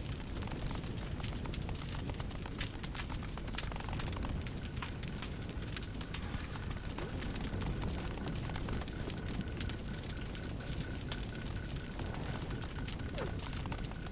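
Light footsteps patter on stone.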